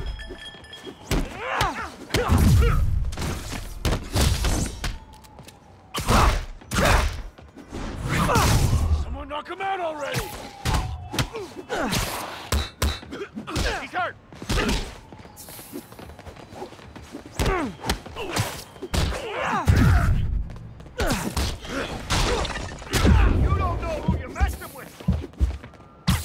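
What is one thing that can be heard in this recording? Punches and kicks thud in a fast brawl.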